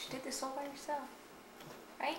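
A woman speaks softly up close.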